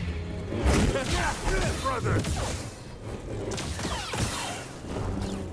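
Energy blades hum and clash in a fight.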